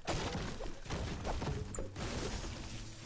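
A pickaxe strikes wood with repeated dull thuds.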